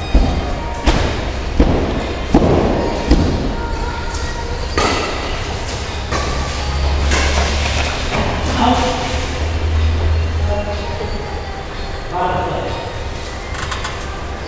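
Players' shoes scuff and squeak on a hard floor.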